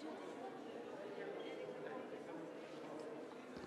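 Several men and women chatter quietly nearby.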